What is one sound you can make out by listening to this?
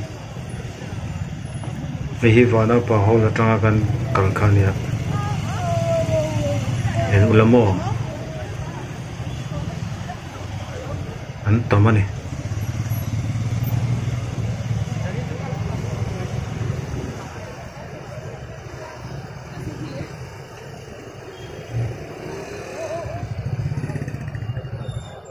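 Car and motorbike engines hum in slow traffic.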